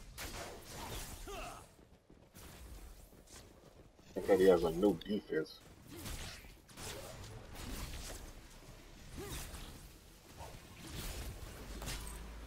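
Swords clash and hit during a fight.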